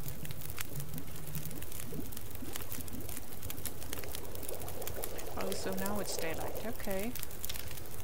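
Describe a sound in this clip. A fire crackles and pops steadily.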